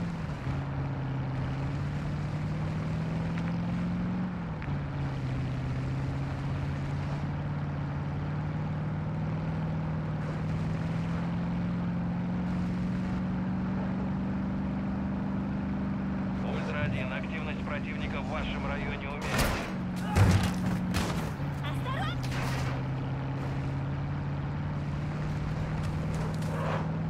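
A truck engine hums steadily, rising and falling in pitch as it shifts gears.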